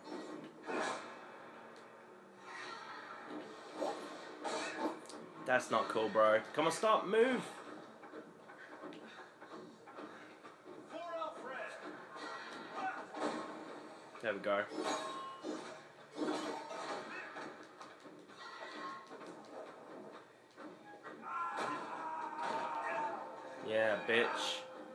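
Clashing fight sounds and roars play through a television's loudspeakers.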